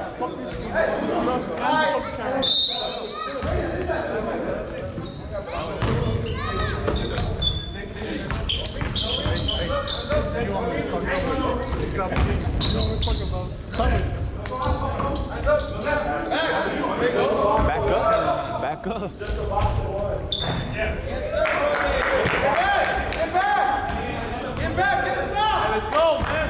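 Men call out and shout to each other across an echoing gym.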